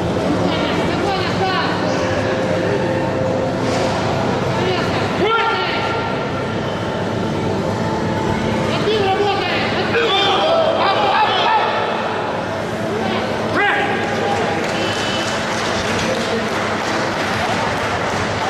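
A crowd of men and women shouts and cheers loudly in an echoing hall.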